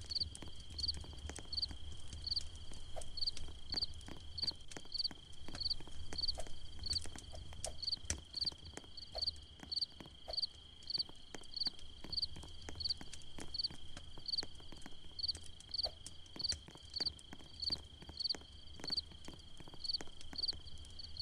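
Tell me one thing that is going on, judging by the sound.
Footsteps tap in a quick, steady rhythm.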